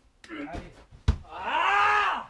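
A body drops onto a padded mat with a dull thud.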